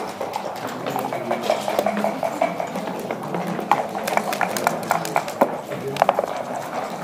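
Game pieces click and clack on a wooden board.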